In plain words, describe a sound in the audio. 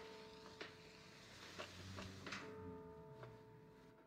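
Buttons click on a wall panel.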